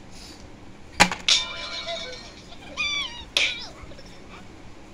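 A tablet game plays squeaky cartoon sound effects through a small speaker.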